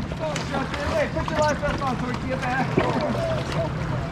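A kayak paddle splashes through water.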